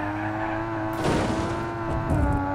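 A car scrapes and crashes against a metal barrier.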